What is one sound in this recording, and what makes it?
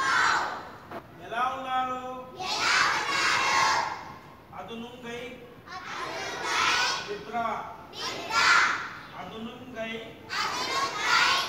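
A large group of children recite lines back in chorus.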